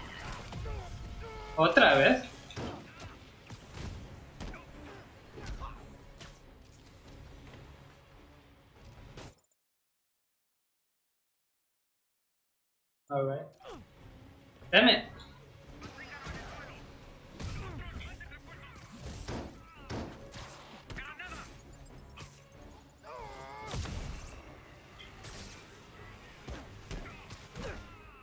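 Punches, blasts and impacts from a game thump and crack.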